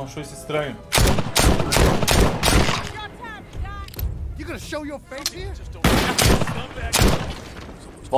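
Gunshots from a revolver ring out loudly, one after another.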